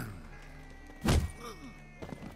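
A fist strikes someone with a heavy thud.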